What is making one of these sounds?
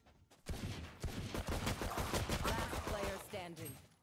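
A pistol fires a shot.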